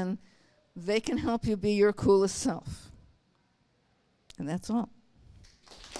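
A woman speaks through a microphone to an audience in a large room.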